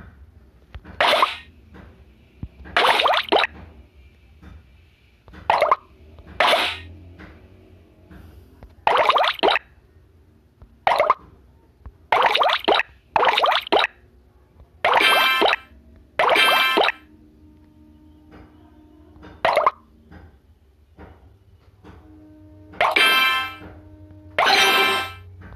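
Game blocks pop and burst with bright chiming sounds, again and again.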